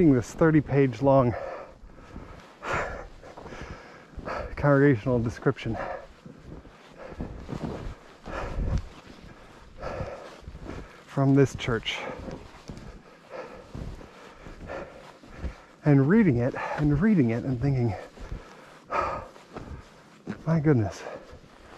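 Footsteps crunch and squeak through deep snow.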